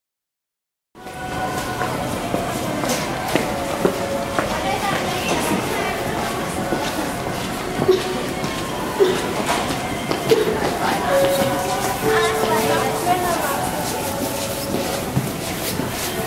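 Indoor crowd chatter echoes through a large hall.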